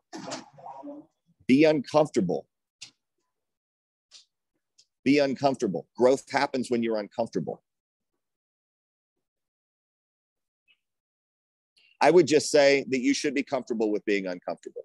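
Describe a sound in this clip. A man speaks calmly in short bursts, close to an earphone microphone, heard over an online call.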